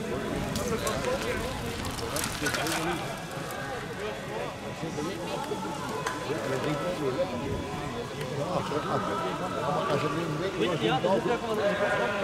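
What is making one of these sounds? Bicycle tyres roll over muddy ground.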